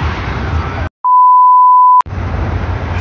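A steady high test tone beeps.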